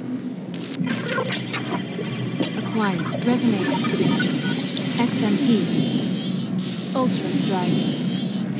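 Electronic game zaps and bursts sound in quick succession.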